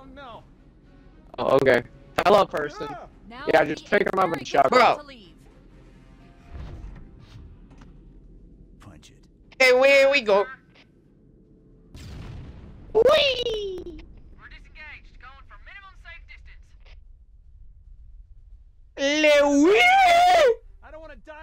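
A young man talks into a headset microphone, reacting with animation.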